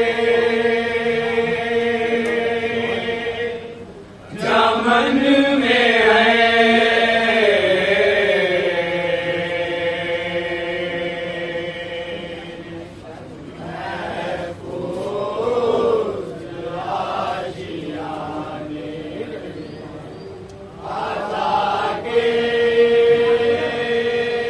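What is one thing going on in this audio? A man recites in a loud, drawn-out chanting voice through a loudspeaker.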